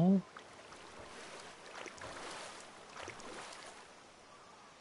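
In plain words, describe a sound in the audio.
Water splashes as a fish thrashes at the surface.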